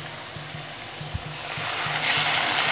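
A thick paste drops into hot oil and sizzles louder.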